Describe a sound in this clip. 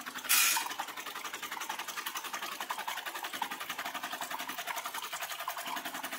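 A hand stirs and rattles coffee beans in a plastic container.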